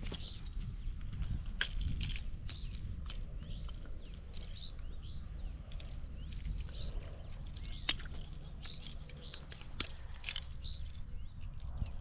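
Metal pliers click while unhooking a fish.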